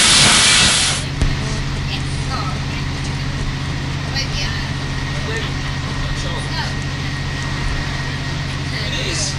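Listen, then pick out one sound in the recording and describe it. A train rumbles along steadily.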